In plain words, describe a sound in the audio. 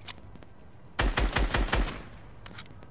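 Gunfire rattles in a short rapid burst.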